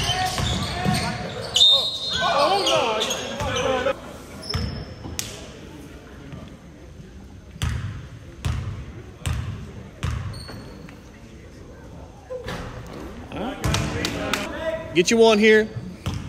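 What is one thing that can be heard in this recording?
Young men shout and call out in an echoing gym.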